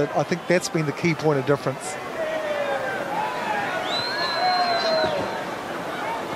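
A crowd of fans chants loudly in an open stadium.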